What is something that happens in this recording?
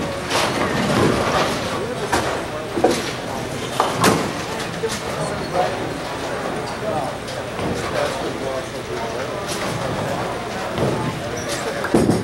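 Bowling pins crash and clatter in a large, echoing hall.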